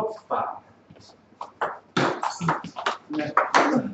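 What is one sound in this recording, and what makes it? A table tennis ball clicks back and forth between paddles and the table.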